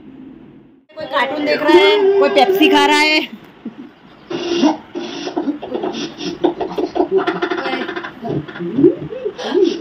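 Young women laugh and chatter.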